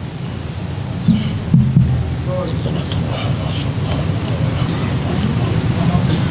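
An adult man speaks into a microphone in a measured, preaching tone.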